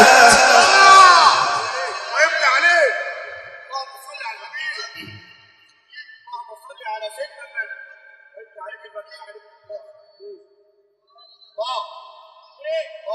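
A man chants melodically into a microphone, heard through loudspeakers with a strong echo.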